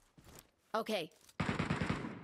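A man speaks briefly with animation into a microphone.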